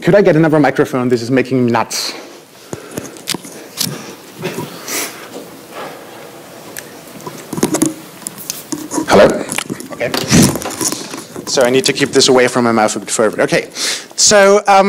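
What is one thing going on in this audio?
A man speaks through a microphone in an echoing room.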